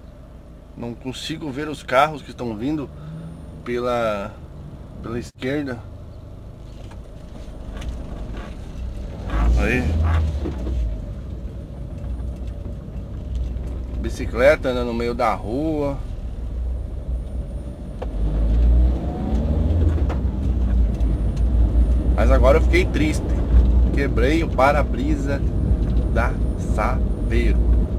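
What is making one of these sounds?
A car engine hums low and steady as the car drives.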